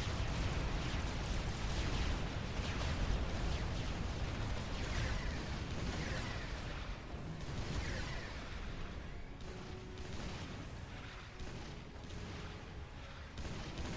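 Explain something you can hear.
Laser weapons fire in short bursts.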